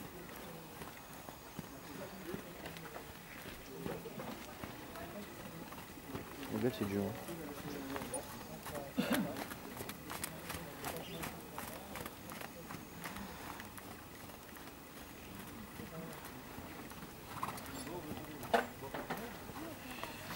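A horse's hooves thud softly on sand as it trots.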